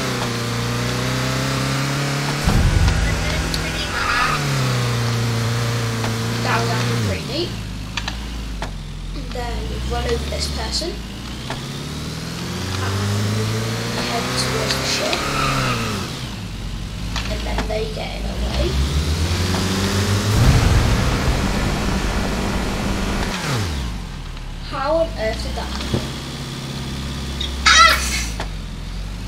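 A car engine revs up and down as it races.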